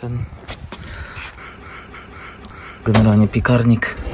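An oven door swings open with a soft clunk.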